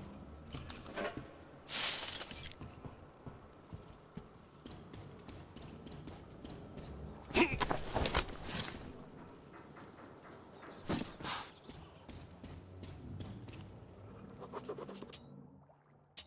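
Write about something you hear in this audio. Footsteps clank and scuff on metal and concrete floors.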